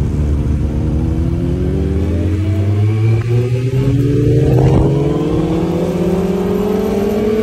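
A motorcycle engine roars up close, its pitch rising steadily as it speeds up.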